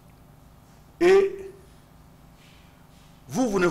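A man speaks into a microphone in short, animated bursts with pauses.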